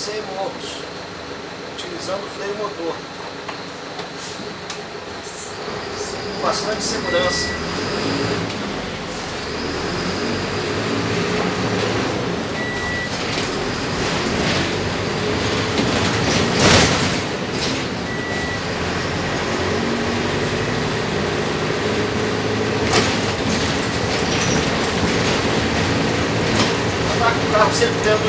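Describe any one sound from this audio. The bus rattles and creaks over bumps.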